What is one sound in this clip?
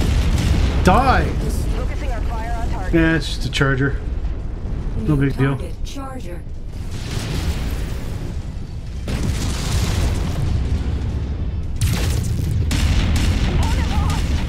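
A deep mechanical rumble drones steadily.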